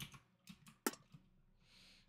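A pickaxe chips and cracks stone blocks.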